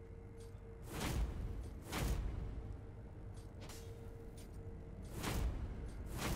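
A sword swishes sharply through the air.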